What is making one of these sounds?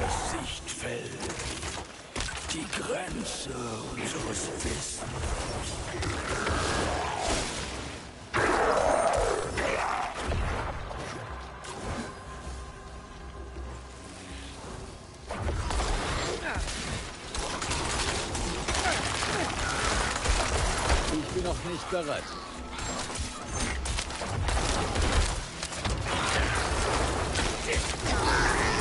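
Spells and weapon blows crash and burst in a fast fight.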